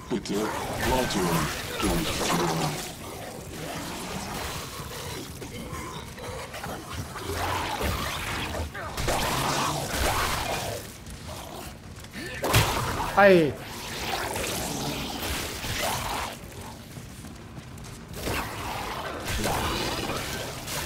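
Monsters snarl and growl.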